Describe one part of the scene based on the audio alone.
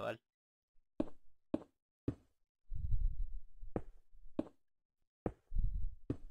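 Stone blocks are placed one after another with short, dull knocks.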